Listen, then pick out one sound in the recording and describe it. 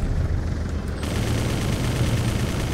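A missile launches and explodes with a boom.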